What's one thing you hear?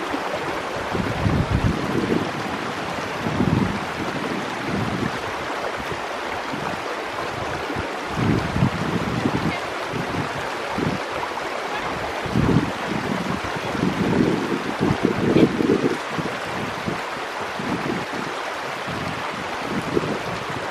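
Wind buffets in gusts outdoors.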